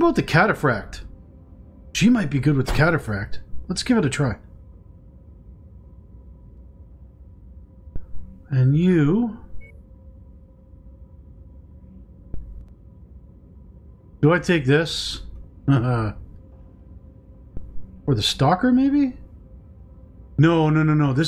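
A man talks with animation into a close microphone, in short bursts with pauses.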